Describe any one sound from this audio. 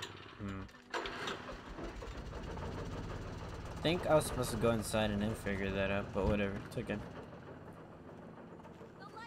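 An old generator engine starts and rumbles steadily.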